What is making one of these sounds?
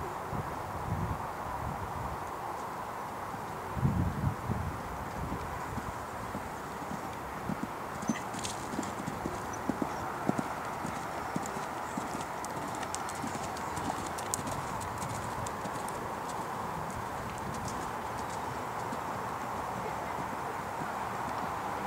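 A horse's hooves thud on soft sand at a canter.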